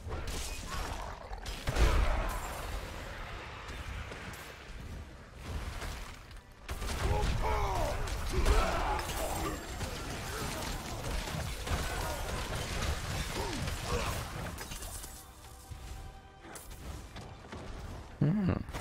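Fiery blasts and weapon hits crash in quick bursts.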